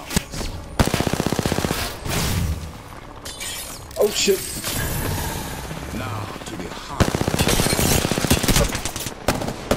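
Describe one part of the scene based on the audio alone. An automatic gun fires rapid bursts.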